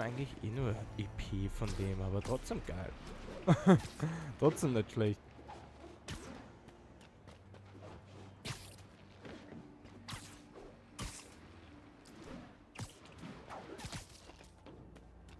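Air whooshes past in short, sharp bursts.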